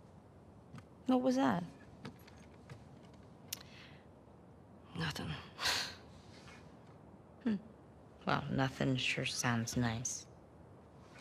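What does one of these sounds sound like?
A young woman asks a question calmly.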